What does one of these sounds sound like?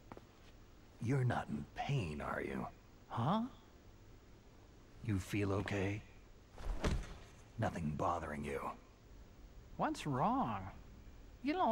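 A man speaks in a low, gruff voice, asking questions.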